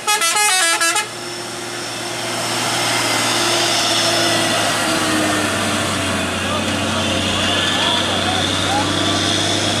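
A truck engine roars loudly as it passes close by.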